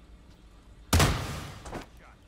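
A shotgun fires with a single loud blast.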